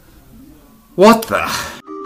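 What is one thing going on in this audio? A man speaks loudly up close.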